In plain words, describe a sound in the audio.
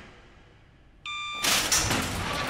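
A control panel gives a short electronic beep.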